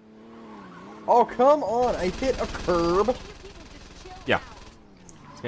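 A car smashes through a wooden fence with a loud crash.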